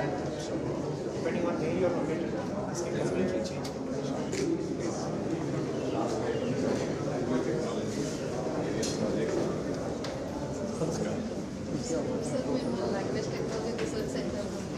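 A crowd of men murmurs and chatters throughout, in an echoing room.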